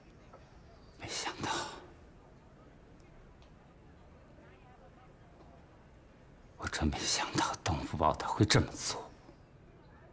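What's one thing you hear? A middle-aged man speaks gravely, close by.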